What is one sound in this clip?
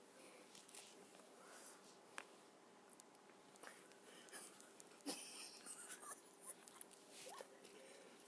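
A small dog crunches and laps food from a bowl close by.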